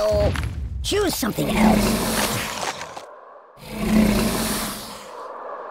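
A dragon breathes fire with a rushing roar.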